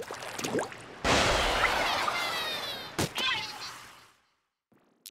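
Liquid splashes and gushes loudly.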